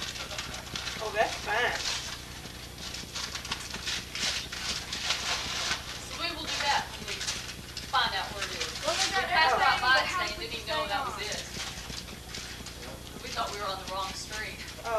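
Paper rustles and tears as gifts are unwrapped.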